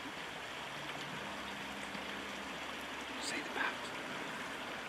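An otter splashes into shallow water.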